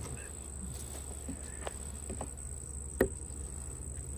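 A metal tool pries and knocks against a wooden hive frame.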